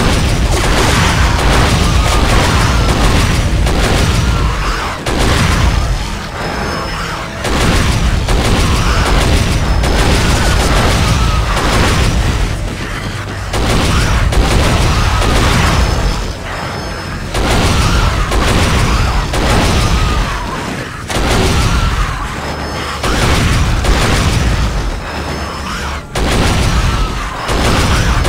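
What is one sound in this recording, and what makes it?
A heavy twin machine gun fires in rapid bursts.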